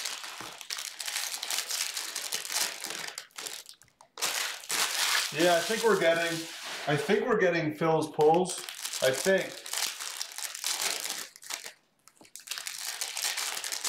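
Foil card packs rustle and crinkle as hands handle them.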